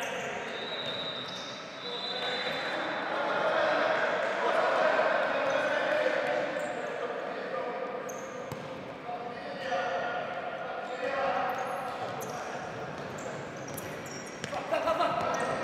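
Young men shout to each other across the hall.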